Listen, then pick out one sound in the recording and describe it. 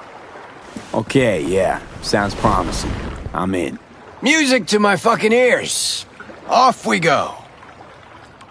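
A man speaks casually and with animation, close by.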